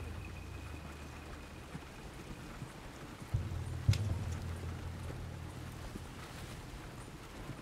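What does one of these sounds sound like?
Wooden wagon wheels rumble and creak over a dirt track.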